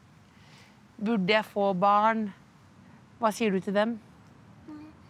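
A young boy speaks up close in a high, whiny voice.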